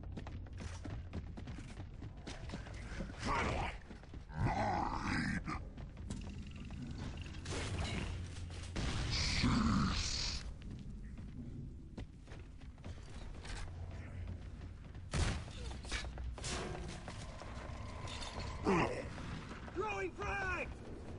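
Heavy boots thud on a hard floor at a run.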